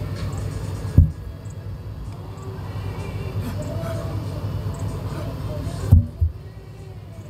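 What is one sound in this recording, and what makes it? A heavy tyre thuds onto the ground.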